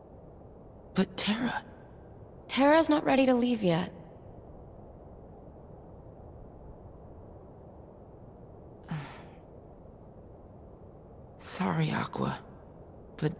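A young man speaks softly.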